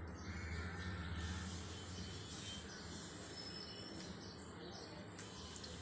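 Dough drops into hot oil with a soft splash.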